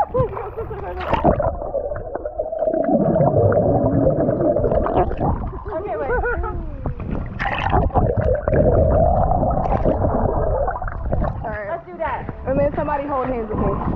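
Water splashes and bubbles gurgle close by, heard from under the surface.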